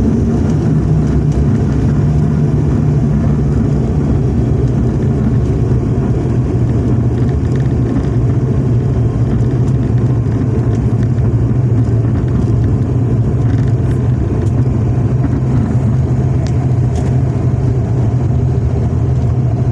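Airplane engines drone loudly and steadily.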